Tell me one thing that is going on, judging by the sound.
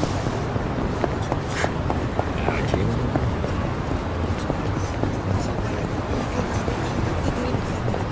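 Footsteps run quickly on pavement and tiled floor.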